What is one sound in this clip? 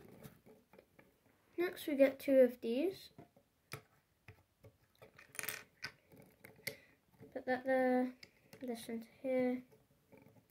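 Small plastic bricks click and snap together close by.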